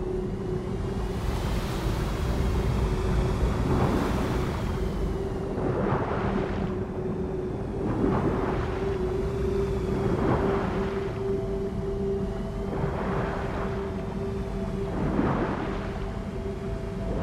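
Water swooshes softly in rhythm with slow swimming strokes.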